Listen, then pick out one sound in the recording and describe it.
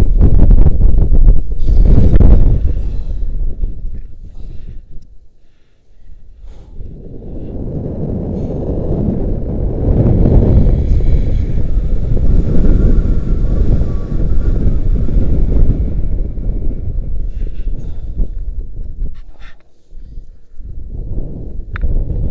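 Wind rushes loudly past in gusts as a person swings back and forth on a rope outdoors.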